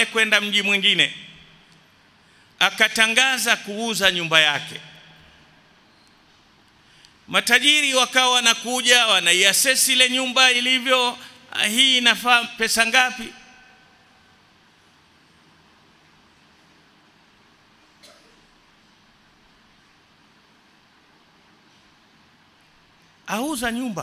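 A man preaches with animation through a microphone, in bursts with long pauses.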